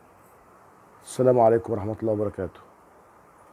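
A middle-aged man speaks calmly and close into a headset microphone.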